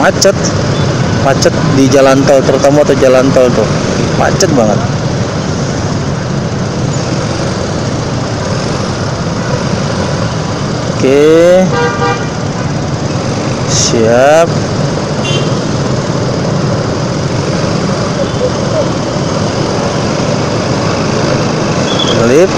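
Motorbike engines rumble and idle in dense traffic close by.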